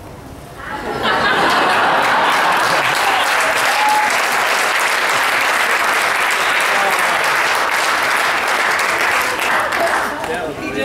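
An audience applauds and cheers loudly.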